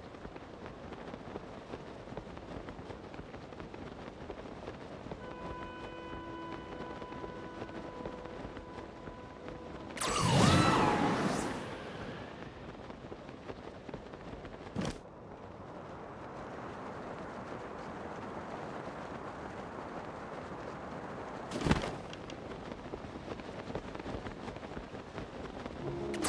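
Wind rushes steadily past during a glide through the air.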